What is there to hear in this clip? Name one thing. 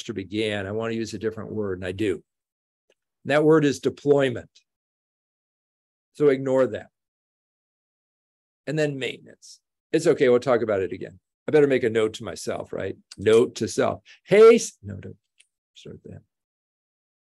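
An elderly man speaks calmly through a microphone, as if on an online call.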